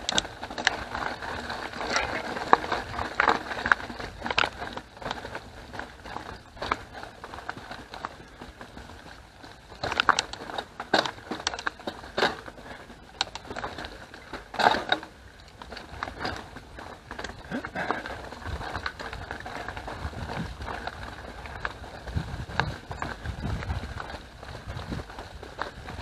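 Bicycle tyres roll and crunch over a dirt trail with dry leaves.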